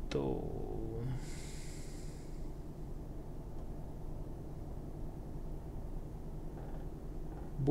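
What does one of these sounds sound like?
A truck engine hums steadily at low pitch.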